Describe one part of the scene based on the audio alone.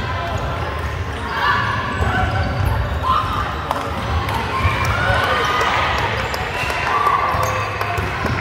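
Sneakers squeak on a hard court floor.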